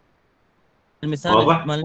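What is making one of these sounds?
A second man starts speaking over an online call.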